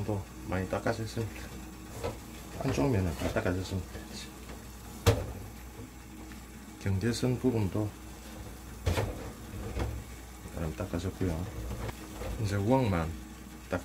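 Water bubbles and boils in a pot.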